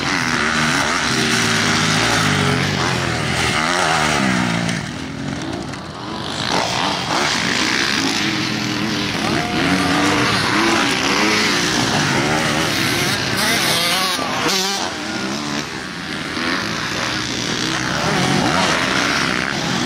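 Motocross bike engines rev loudly and whine as the bikes race over dirt.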